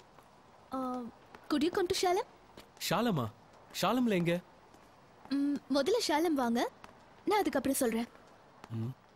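A young woman talks on a phone, calmly.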